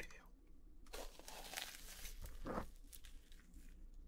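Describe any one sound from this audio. Crispy fried chicken crunches loudly as a young man bites into it.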